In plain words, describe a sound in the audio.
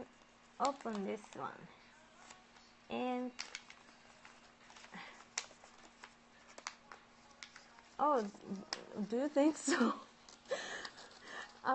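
Paper crinkles softly as it is folded.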